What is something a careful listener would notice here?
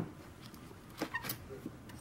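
Small hard objects click softly as hands handle them.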